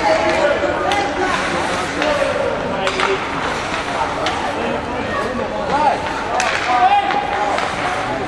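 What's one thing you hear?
Players shout to each other across an echoing rink.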